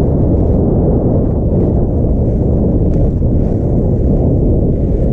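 Skis hiss over packed snow.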